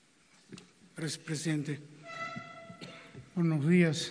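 A man speaks through loudspeakers in a large echoing hall.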